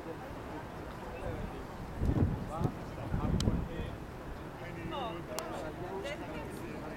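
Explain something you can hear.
A crowd of adult men and women chat nearby outdoors.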